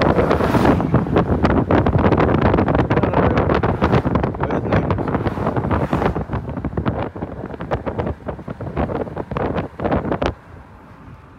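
Wind and road noise rumble loudly inside a moving car.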